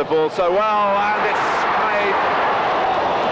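A large stadium crowd roars loudly.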